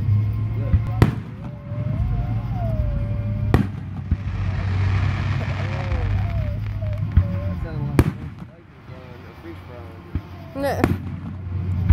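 Fireworks burst with sharp bangs overhead.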